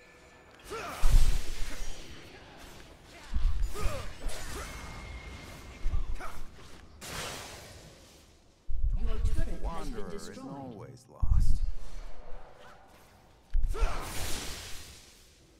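Magic spell effects whoosh and crackle in short bursts.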